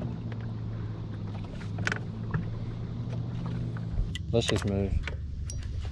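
A fishing reel clicks as the line winds in.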